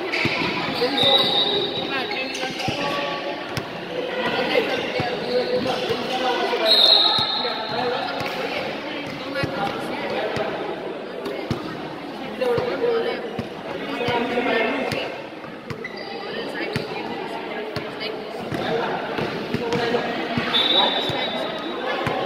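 Sneakers squeak on a hard court floor in a large echoing hall.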